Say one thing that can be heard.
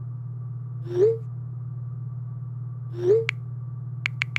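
A phone plays a short rising message alert tone.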